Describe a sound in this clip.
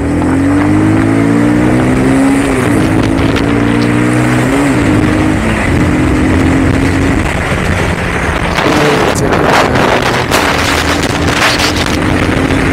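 A motorcycle engine hums and revs as it rides along.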